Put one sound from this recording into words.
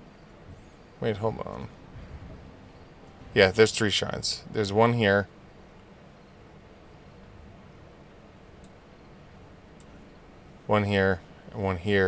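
A young man speaks casually and close to a microphone, in short bursts.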